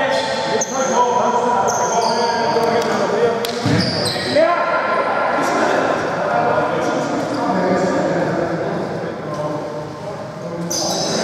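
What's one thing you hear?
A basketball bounces on a hard floor with echoes.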